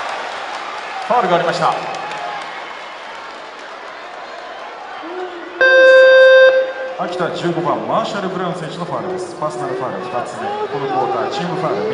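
A large crowd cheers and chants in a big echoing arena.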